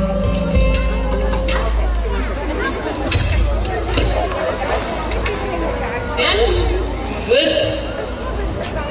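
An electric guitar plays through an amplifier.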